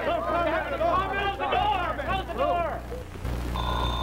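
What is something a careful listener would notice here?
A man speaks loudly.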